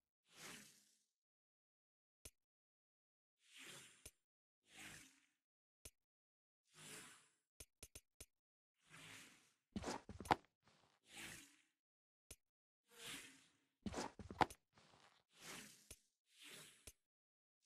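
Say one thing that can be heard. Soft airy whooshes sound as a game menu selection moves.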